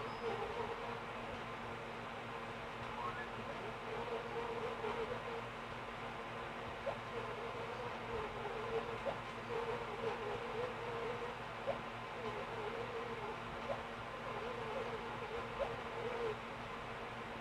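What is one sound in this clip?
Quick, chirpy game dialogue babble plays through a television speaker.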